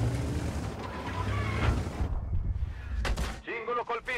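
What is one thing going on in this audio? A shell explodes with a loud blast.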